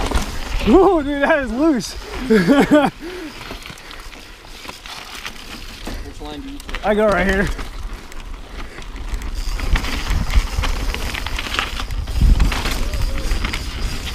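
Wind rumbles against the microphone as the bike moves.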